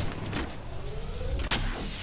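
A video game shield recharger crackles with electricity as it charges.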